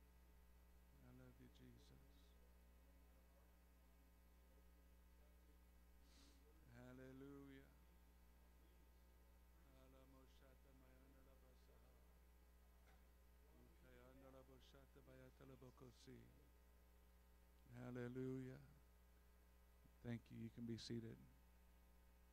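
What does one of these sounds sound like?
A man speaks slowly and calmly through a microphone, heard over loudspeakers in a large room, with long pauses.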